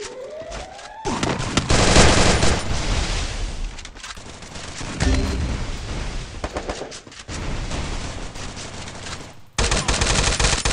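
Rapid gunfire crackles in quick bursts.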